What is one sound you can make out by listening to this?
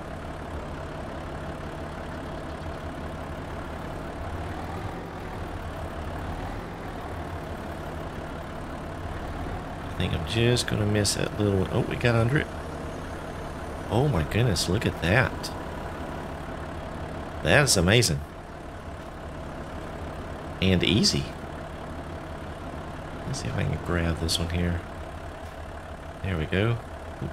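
A heavy diesel engine rumbles steadily at idle.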